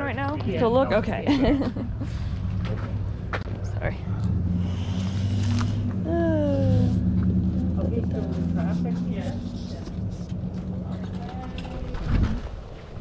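Adults talk nearby outdoors.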